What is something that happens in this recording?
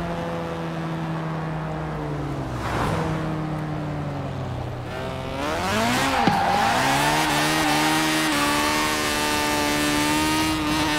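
A car engine hums, then revs hard and climbs in pitch as the car speeds up.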